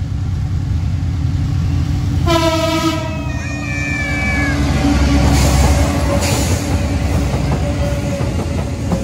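A diesel locomotive engine rumbles heavily as it passes close by.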